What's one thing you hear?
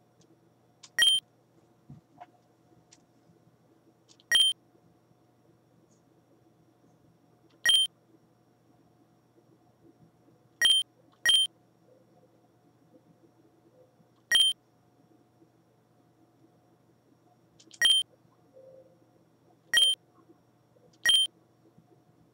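A short, bright chime sounds each time the game's dialogue text moves on.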